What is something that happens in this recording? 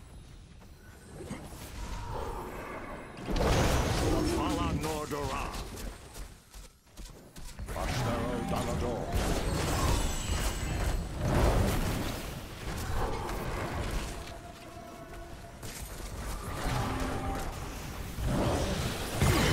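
Video game battle effects clash and burst.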